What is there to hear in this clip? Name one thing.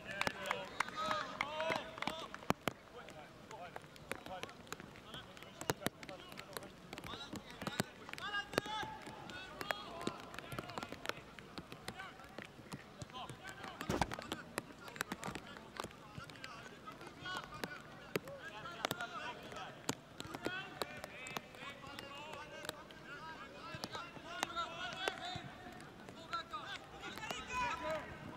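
A crowd of spectators murmurs and calls out in the open air.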